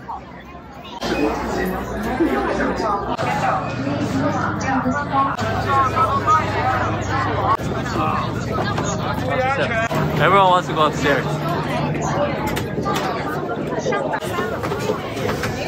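A crowd of people chatters nearby in an echoing space.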